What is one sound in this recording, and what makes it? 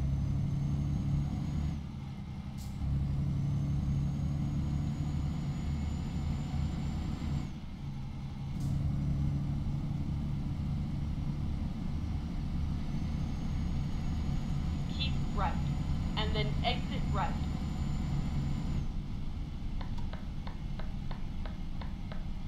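A truck engine drones steadily, dropping briefly as gears change.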